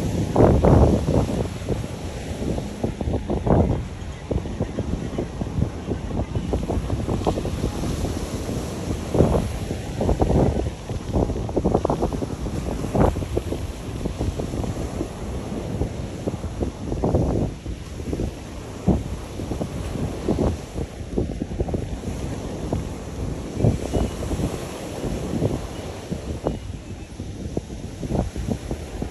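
Wind gusts hard against the microphone, outdoors.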